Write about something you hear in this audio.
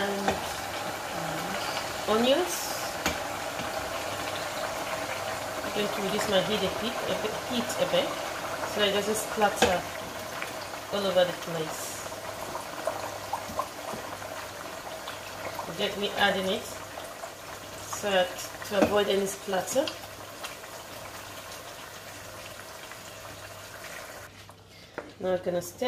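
A spatula scrapes and taps against a metal pot.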